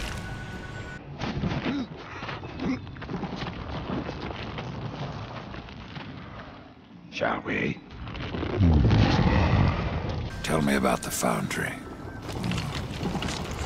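A giant stone creature speaks in a deep, booming voice.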